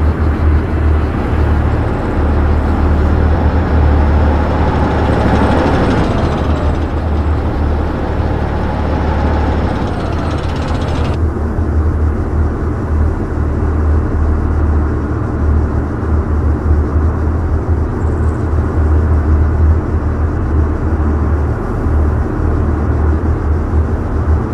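A tank engine rumbles loudly as it drives along a dirt track.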